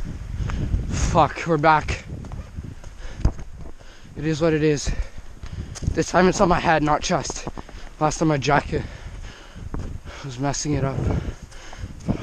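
A man speaks close by, out of breath.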